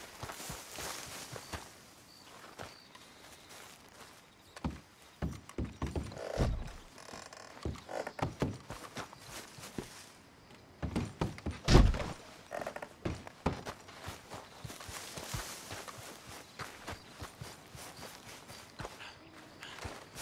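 Footsteps crunch on wet ground and thud on wooden steps.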